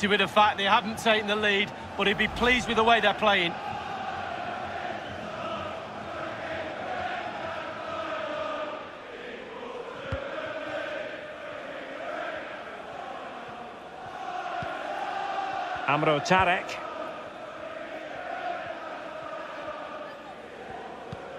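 A large stadium crowd murmurs and chants steadily.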